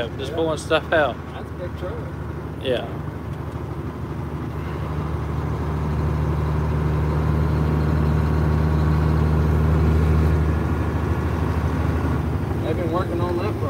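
A large vehicle's engine hums steadily, growing louder and then easing off.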